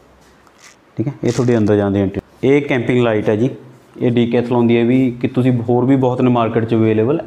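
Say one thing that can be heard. A man speaks calmly and close into a clip-on microphone.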